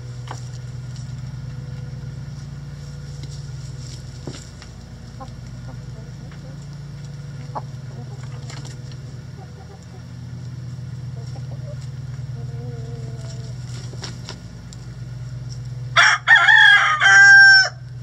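Chickens scratch and peck in dry leaves.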